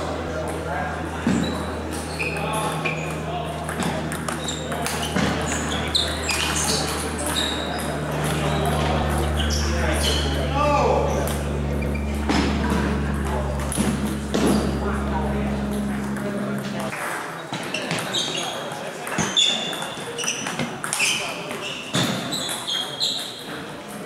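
A ping-pong ball clicks back and forth on paddles and a table in a large echoing hall.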